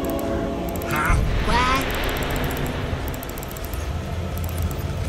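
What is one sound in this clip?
Video game battle effects whoosh and clash.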